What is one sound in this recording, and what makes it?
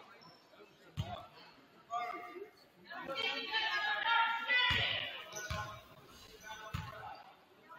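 A basketball bounces on a hard wooden floor in a large echoing gym.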